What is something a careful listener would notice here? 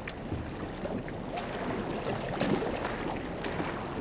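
Footsteps splash through shallow liquid.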